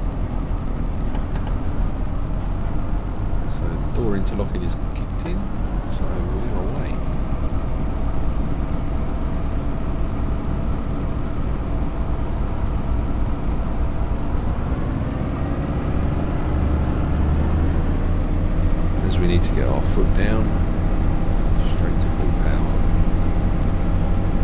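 A steady low rumble of a train rolls underneath.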